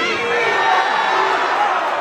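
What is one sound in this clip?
A man shouts into a microphone.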